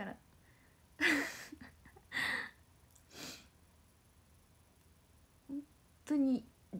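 A young woman giggles behind her hand.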